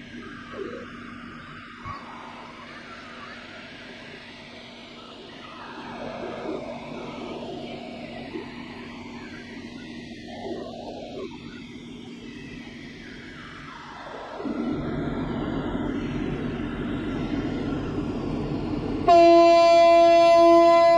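A large ship's engine rumbles steadily as the ship glides past close by.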